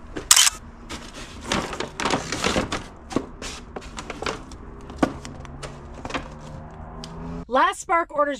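A paper bag rustles and crinkles as it is handled.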